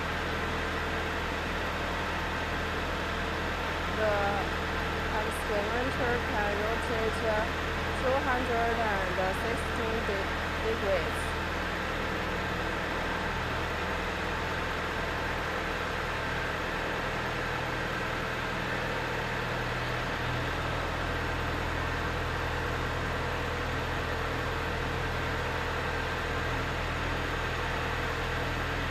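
A loader's diesel engine idles with a steady low rumble.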